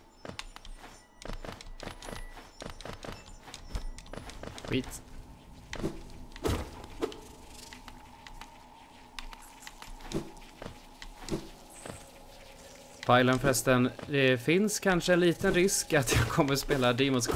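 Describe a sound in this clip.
Sharp slashing and hitting sounds ring out now and then.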